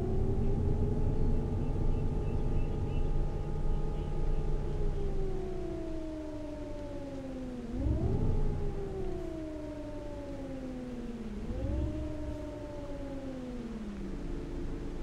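A bus engine drones, its pitch sliding down and jumping back up as it shifts gears.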